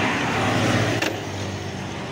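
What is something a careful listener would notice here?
A hand taps against a plastic badge.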